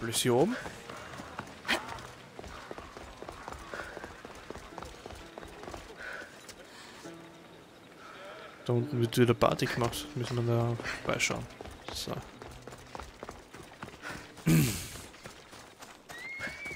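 Footsteps patter quickly on stone and dry grass.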